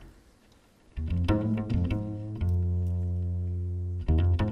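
A double bass is plucked with deep, ringing notes.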